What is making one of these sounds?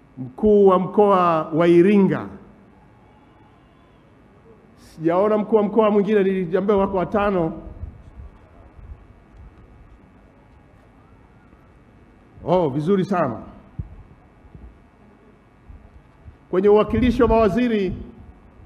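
A middle-aged man speaks forcefully into a microphone in short bursts with pauses between them.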